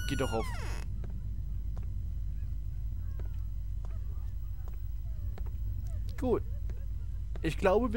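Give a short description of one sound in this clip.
Footsteps thud slowly on wooden boards.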